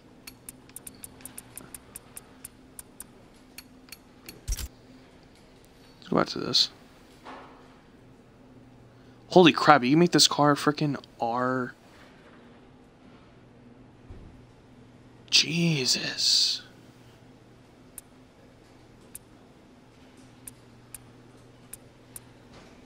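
Short electronic menu clicks tick in quick succession.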